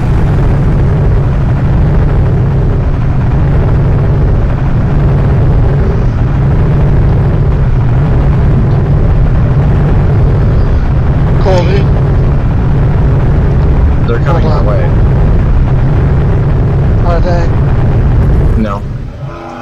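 Fuel gushes steadily from a pump nozzle into a car's tank, then stops.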